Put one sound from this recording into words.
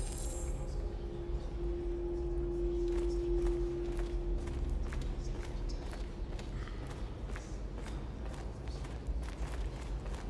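Footsteps crunch slowly on a gritty floor.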